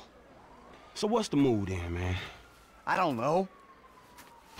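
A second man answers in a lively voice, close by.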